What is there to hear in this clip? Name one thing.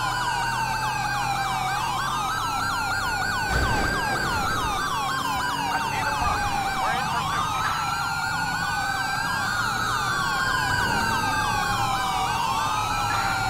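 Police sirens wail and yelp throughout, rising and falling.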